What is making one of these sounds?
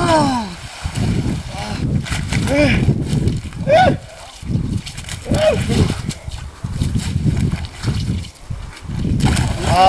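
A man splashes about in icy water.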